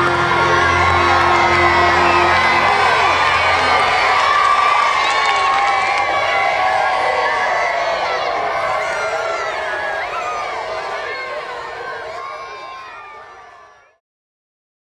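A large crowd of children sings loudly together outdoors, then fades away.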